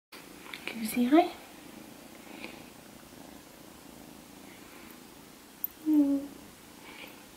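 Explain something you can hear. A kitten meows loudly.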